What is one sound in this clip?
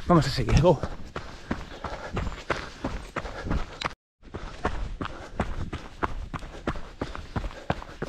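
Footsteps crunch on a dirt track.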